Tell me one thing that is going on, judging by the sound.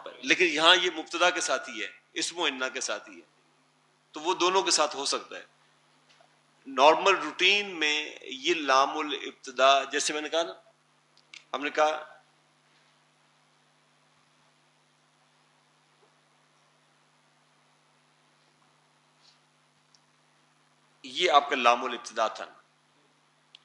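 An elderly man speaks calmly into a headset microphone, in short bursts with pauses.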